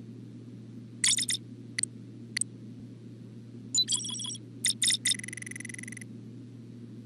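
Electronic interface beeps and chimes sound as menu options are clicked.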